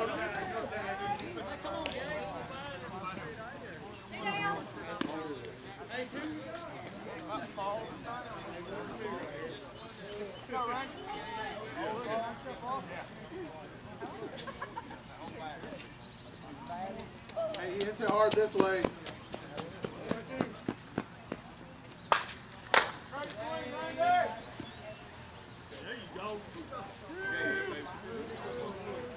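Adult men and women talk and call out nearby outdoors.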